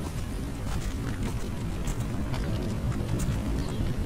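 A small fire crackles nearby.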